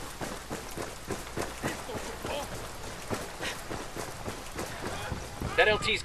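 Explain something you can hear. Heavy boots thud quickly on hard ground as a soldier runs.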